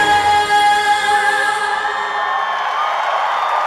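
A young woman sings into a microphone over loudspeakers.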